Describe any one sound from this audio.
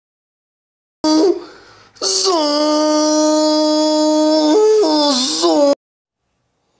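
A pig squeals loudly.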